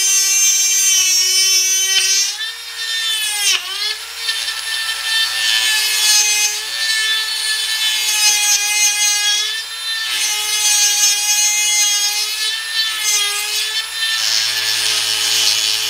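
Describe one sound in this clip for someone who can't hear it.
A small rotary tool whines at high speed, its pitch dipping and rising as it presses on metal.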